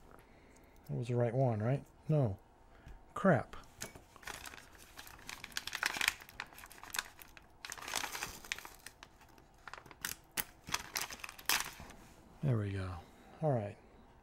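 Metal keys clink and jingle in hands.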